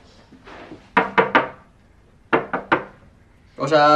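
A man knocks on a door.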